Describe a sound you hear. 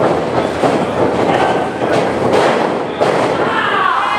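A wrestler's body slams onto a wrestling ring mat with a loud thud.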